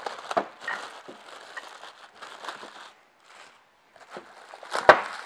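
Plastic wrapping crinkles and rustles as it is pulled off.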